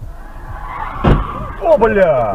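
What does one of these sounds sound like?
Cars collide with a loud crash.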